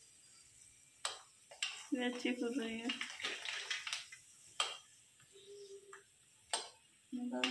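A metal spoon clinks against a pan.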